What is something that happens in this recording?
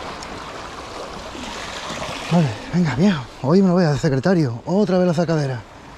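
Waves slosh and splash against rocks close by.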